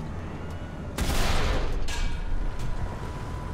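A tank cannon fires a loud shot with a booming echo.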